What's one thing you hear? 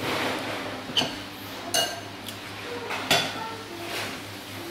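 A metal spoon clinks against a bowl.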